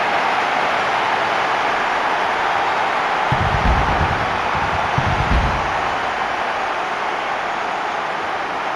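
A large crowd cheers and roars steadily in a big stadium.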